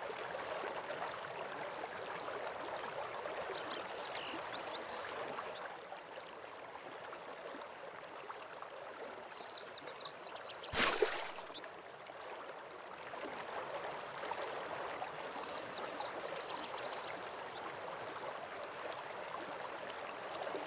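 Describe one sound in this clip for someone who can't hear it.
A waterfall rushes steadily in the distance.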